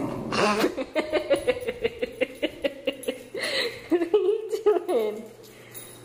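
A dog's claws click quickly on a hard floor.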